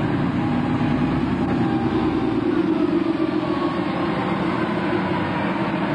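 A bus engine rumbles and hums as it drives past close by.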